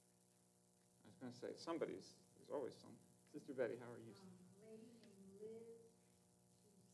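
A young man speaks calmly into a microphone in an echoing hall.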